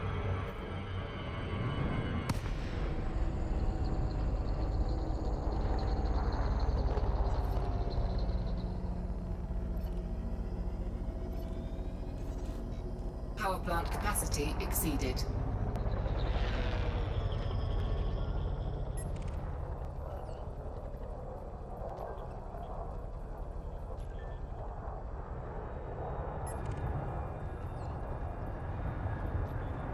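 A game spaceship's engines hum low and steady.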